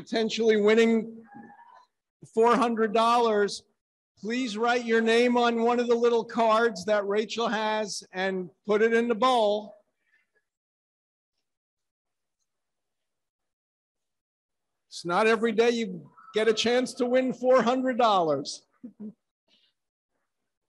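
A middle-aged man speaks over a microphone, with long pauses.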